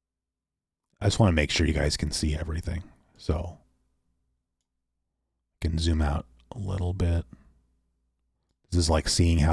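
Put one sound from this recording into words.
A man talks into a close microphone in short, calm bursts.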